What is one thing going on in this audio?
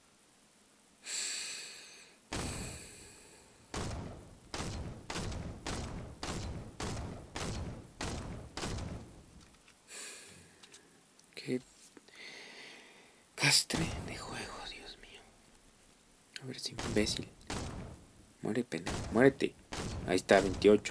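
Rifle shots crack one after another, each with a short echoing tail.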